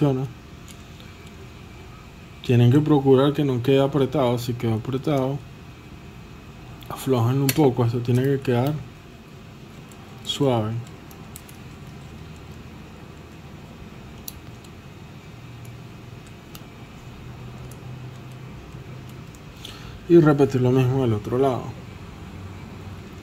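Small plastic parts click and snap softly as they are fitted together.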